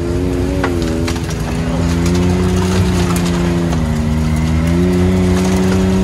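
An off-road vehicle engine hums steadily up close, its pitch shifting slightly.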